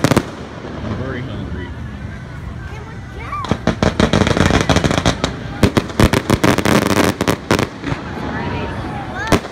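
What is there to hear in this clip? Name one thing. Fireworks whistle as they rise.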